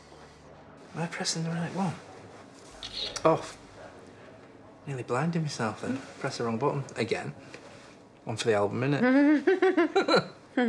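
A middle-aged man talks warmly close by.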